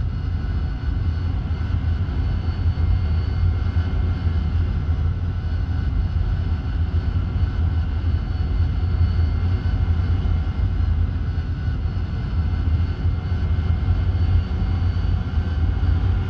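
A jet engine hums and whines steadily.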